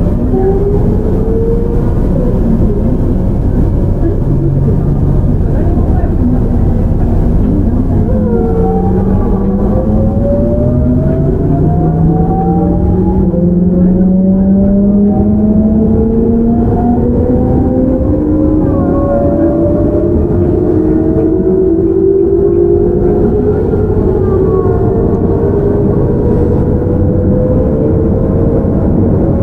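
An electric train's motor whines, rising steadily in pitch.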